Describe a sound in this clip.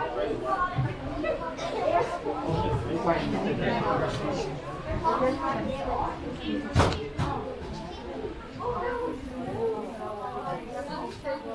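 Several adults chat nearby with lively voices.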